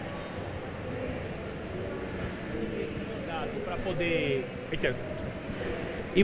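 A man speaks through a microphone to an audience in a large echoing hall.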